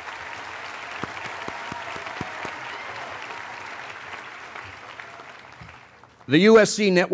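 An audience applauds and the applause fades away.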